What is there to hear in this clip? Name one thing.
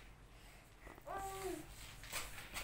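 A baby coos softly nearby.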